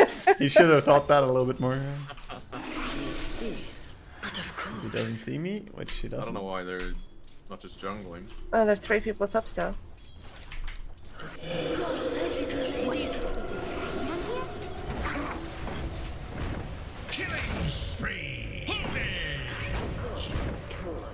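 Game sound effects of spells and fighting crackle and whoosh.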